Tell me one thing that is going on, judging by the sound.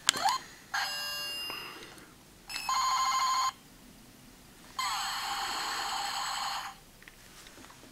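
A handheld electronic toy plays bright electronic tunes and beeps.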